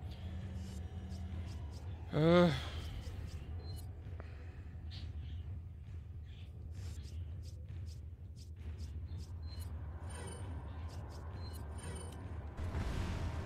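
Short electronic beeps and clicks sound as menu choices are made.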